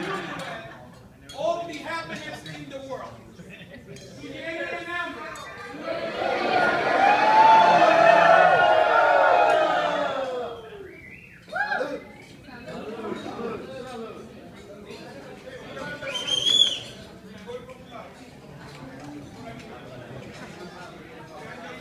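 Adult men and women chatter nearby.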